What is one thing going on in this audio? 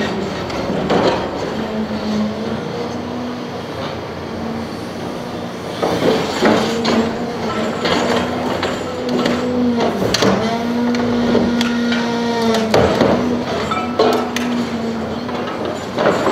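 Metal scraps clang and rattle as they shift.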